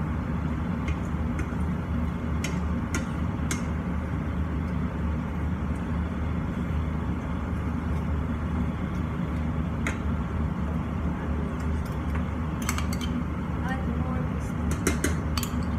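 An extractor fan hums steadily.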